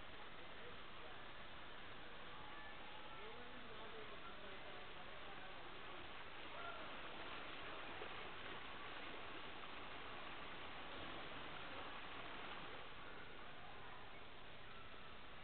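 Water rushes steadily down a slide close by.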